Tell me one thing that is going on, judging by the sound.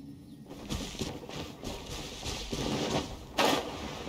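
Footsteps run quickly through grass.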